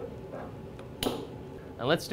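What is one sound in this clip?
A glass bottle clinks.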